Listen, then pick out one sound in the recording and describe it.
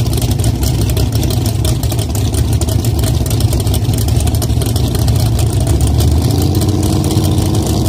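A car's engine idles with a loud, rough, burbling rumble close by.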